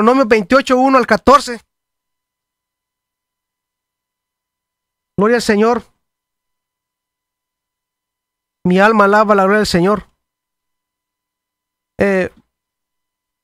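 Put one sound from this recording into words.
A middle-aged man speaks calmly and close into a microphone, in short phrases with pauses.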